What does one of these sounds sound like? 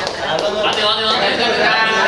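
A young man shouts out counts with excitement.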